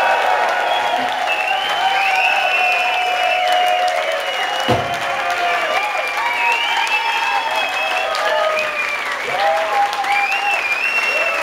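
An electric guitar plays.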